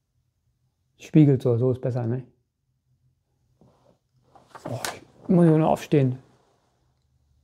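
A middle-aged man speaks calmly and close by, in short phrases.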